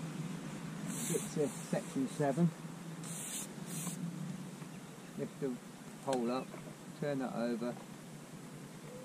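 A man talks quietly and calmly close by.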